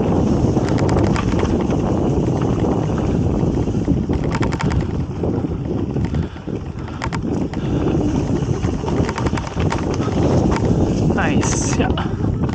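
Wind rumbles loudly past the microphone.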